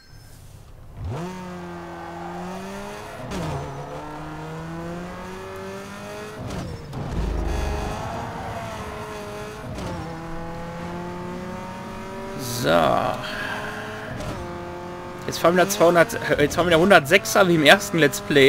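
A racing car engine revs high and shifts through gears as the car speeds up.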